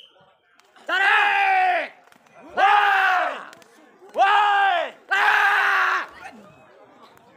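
Young men shout loud, drawn-out calls outdoors to bring down pigeons.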